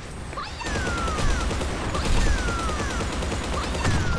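Rapid gunfire rattles from a rifle.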